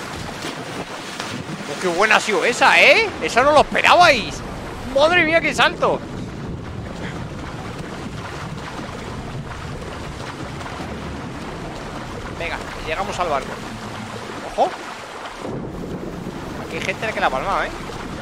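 A swimmer splashes through water.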